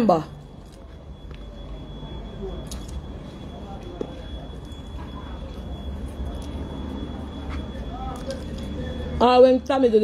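A woman chews food with her mouth close to a microphone.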